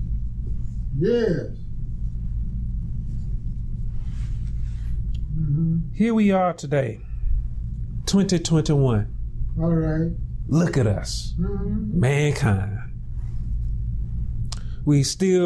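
A man speaks calmly and slowly into a microphone, with long pauses.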